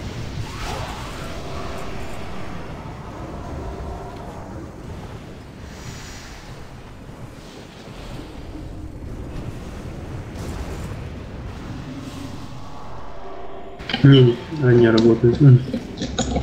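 Weapons clash and spells burst in a busy fantasy battle.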